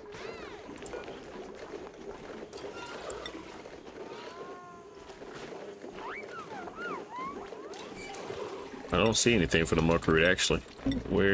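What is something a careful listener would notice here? Soft interface clicks sound as menu items are chosen.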